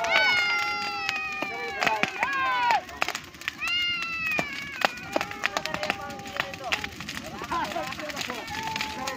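A bonfire crackles and pops loudly.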